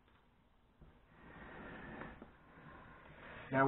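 A metal pot slides across a countertop.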